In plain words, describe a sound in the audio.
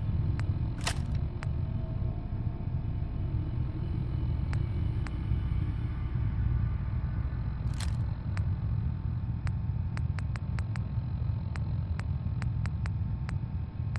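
Short electronic clicks tick as a menu selection moves up and down.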